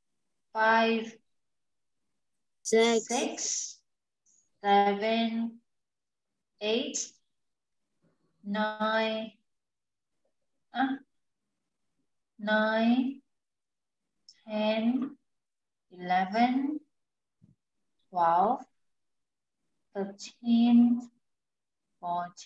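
A young woman speaks slowly and clearly into a microphone, in short phrases with pauses.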